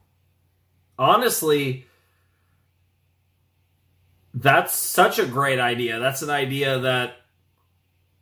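A young man speaks calmly and close to a microphone, in short phrases.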